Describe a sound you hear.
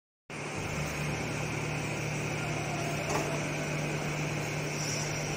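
Sheet metal slides and scrapes across a machine table.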